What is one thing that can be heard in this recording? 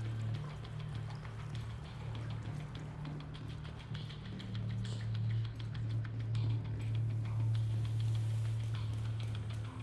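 Footsteps tap on a hard floor and metal stairs.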